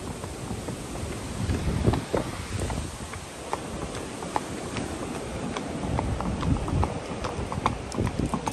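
Horse hooves thud on a dirt path.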